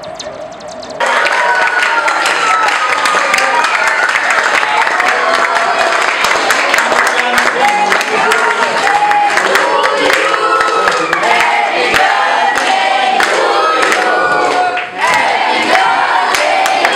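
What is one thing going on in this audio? A group of men and women sing together loudly, close by.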